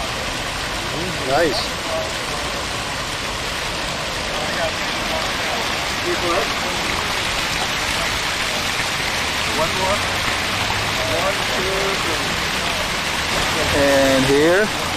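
Fountain water splashes steadily.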